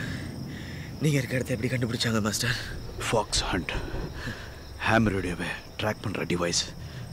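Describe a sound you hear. A man speaks in a strained, breathless voice close by.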